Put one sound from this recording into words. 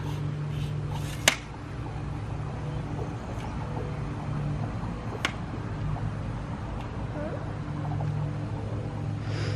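A pool pump hums steadily nearby.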